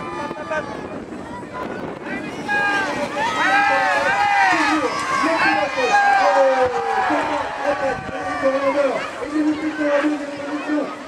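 A crowd of spectators cheers and shouts excitedly outdoors.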